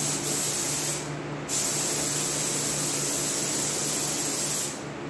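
A spray gun hisses loudly in bursts.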